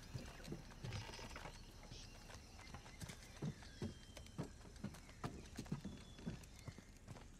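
Footsteps thud on creaking wooden planks.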